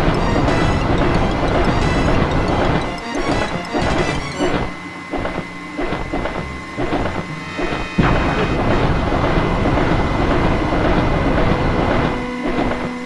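Fiery blasts roar and crackle.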